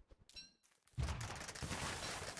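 A fiery blast bursts and crackles loudly.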